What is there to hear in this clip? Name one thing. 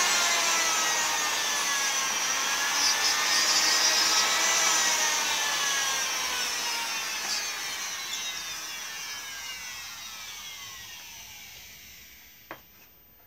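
A small rotary tool whines at high speed and slowly winds down.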